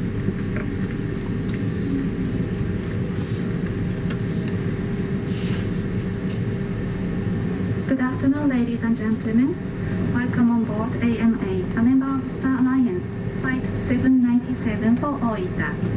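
Aircraft engines hum steadily, heard from inside the cabin.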